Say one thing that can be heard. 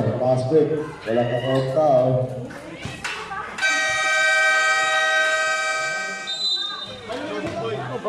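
A crowd of spectators chatters and shouts.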